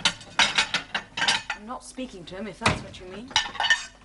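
A cupboard door opens and closes with a knock.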